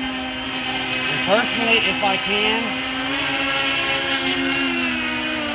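An electric motor of a model airplane whines steadily overhead.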